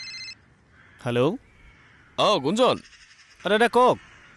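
A young man speaks loudly into a phone, with animation.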